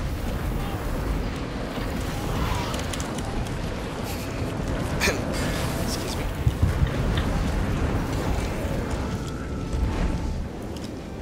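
Spell blasts and impacts crackle and boom during a fight.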